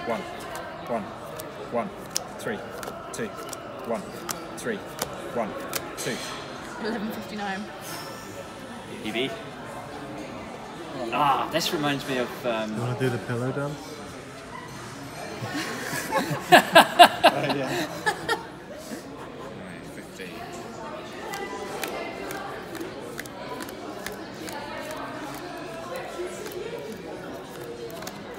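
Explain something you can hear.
Cardboard cards slap down onto a table.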